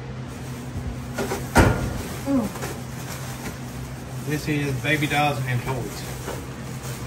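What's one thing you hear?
Plastic bags rustle as they are pulled out.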